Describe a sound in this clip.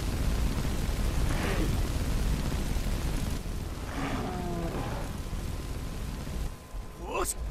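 A fire spell roars and crackles.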